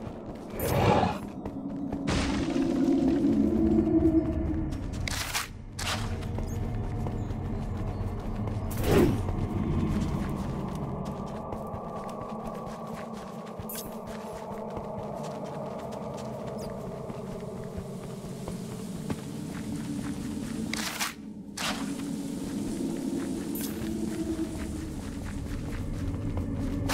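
Footsteps patter steadily on stone.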